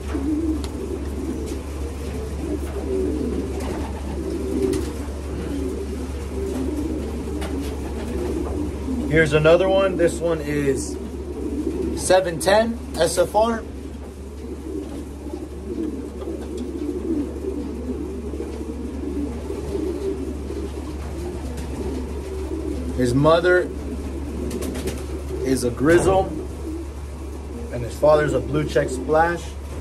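A young man talks calmly and close up.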